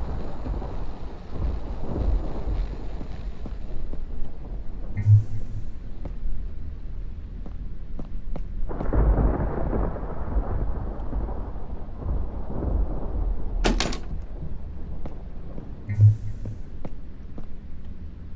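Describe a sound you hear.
Footsteps tap on a hard wooden floor.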